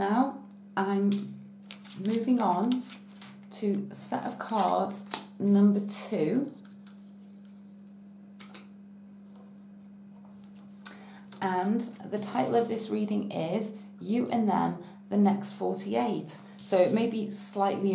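Playing cards softly slide and tap on a table.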